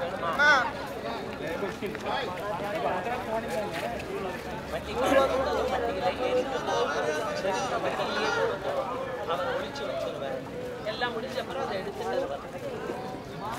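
A crowd of men and women chatters outdoors all around.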